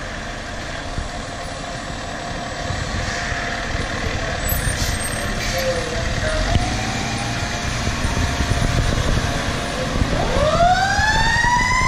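A fire engine's motor rumbles as it pulls out and drives off.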